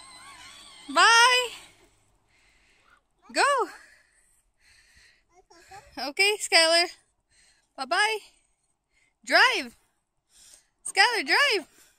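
A small girl squeals and shouts in high bursts close by.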